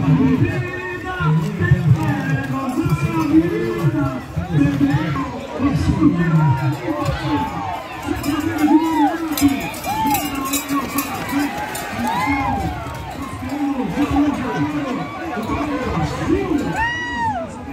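A crowd of men and women shouts and cheers outdoors.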